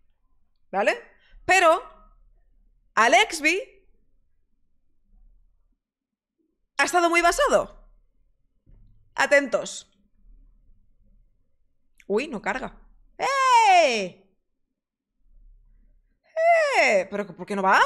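A woman speaks expressively into a close microphone, in short bursts with pauses.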